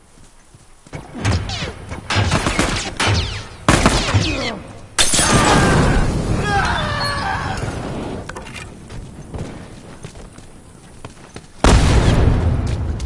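Loud gunshots and blasts ring out in bursts.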